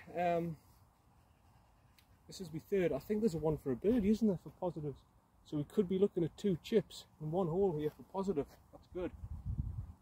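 A man talks casually close by.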